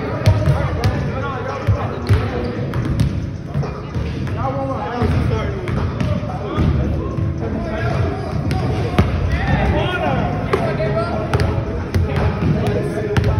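Young people talk and call out nearby.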